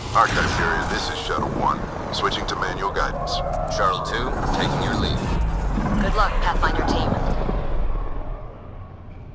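A spacecraft engine hums and rumbles steadily.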